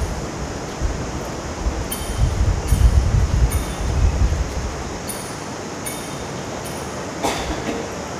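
Small metal chains clink as a censer swings.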